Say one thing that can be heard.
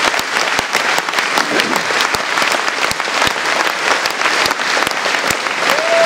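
An audience applauds steadily, with many hands clapping close by.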